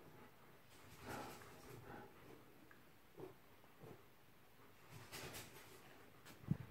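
A dog whines and grumbles in short bursts close by.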